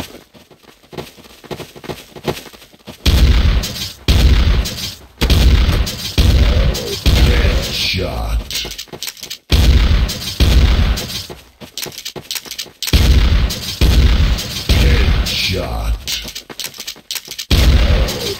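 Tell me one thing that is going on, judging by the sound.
A shotgun is pumped and reloaded with metallic clicks.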